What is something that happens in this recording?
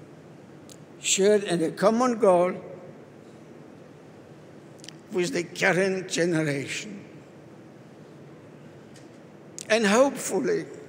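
A man speaks slowly and solemnly through a microphone and loudspeakers, echoing off the walls outdoors.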